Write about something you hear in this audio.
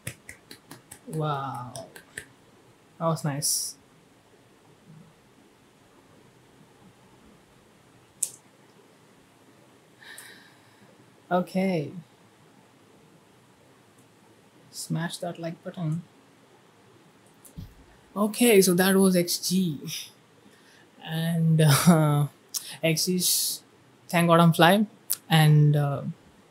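A young man speaks into a close microphone, calmly at first and then with animation.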